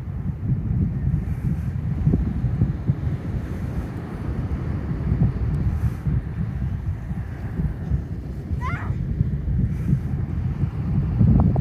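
Strong wind buffets outdoors with a low roar.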